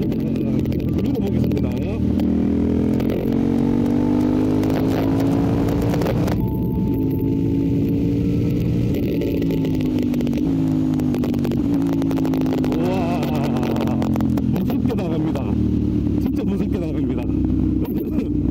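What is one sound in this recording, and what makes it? A motorcycle engine hums loudly, rising and falling in pitch as the rider shifts gears.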